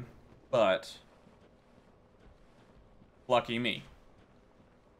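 A young man speaks briefly and casually into a close microphone.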